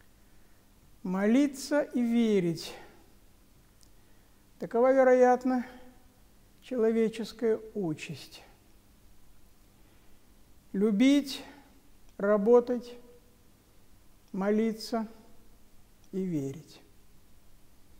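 An elderly man speaks calmly into a close microphone, with pauses between phrases.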